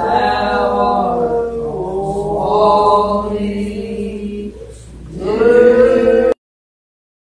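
A congregation of men and women sings a hymn together.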